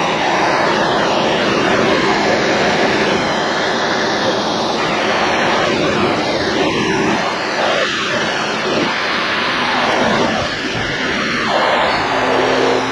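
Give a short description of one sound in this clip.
An excavator's diesel engine rumbles steadily nearby.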